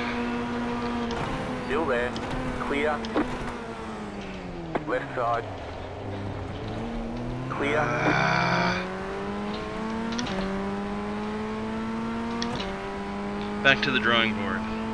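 A racing car engine whines loudly, its pitch falling as it slows and rising as it speeds up.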